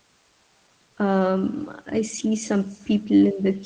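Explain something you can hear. A woman speaks calmly through a microphone, heard over an online call.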